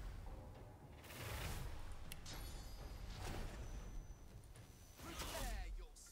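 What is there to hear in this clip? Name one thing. Magic spells whoosh and crackle in a game.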